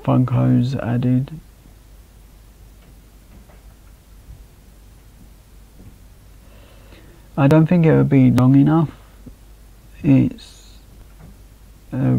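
A young man talks calmly into a microphone, close by, with pauses.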